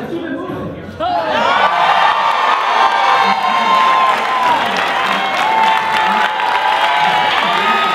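A crowd claps their hands.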